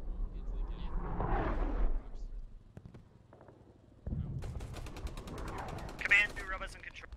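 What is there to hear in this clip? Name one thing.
Shells explode with heavy booms in the distance.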